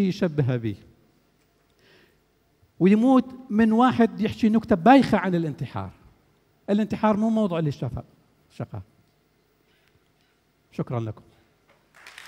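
A man speaks with animation into a microphone, in a large hall.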